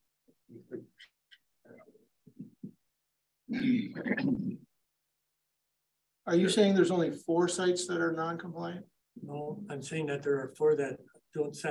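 A man speaks calmly, heard through a meeting microphone in a room.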